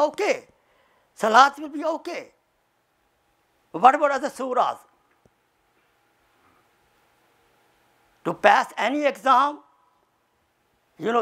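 An elderly man speaks with animation into a close microphone, in short bursts with pauses.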